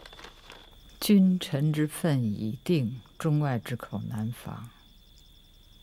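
An elderly man speaks slowly and gravely, close by.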